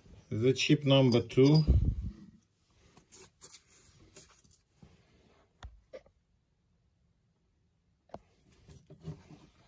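Small metal lens parts click and clink softly as they are handled.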